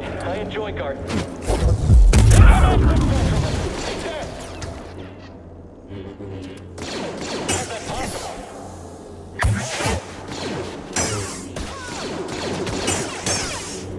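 Blades clash with sharp crackling hits.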